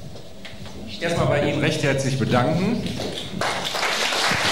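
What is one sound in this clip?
A second man speaks and jokes through a microphone.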